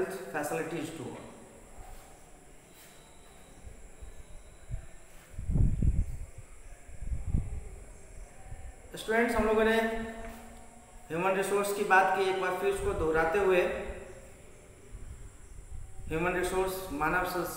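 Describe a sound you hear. A man speaks calmly close to a microphone, in short phrases with pauses.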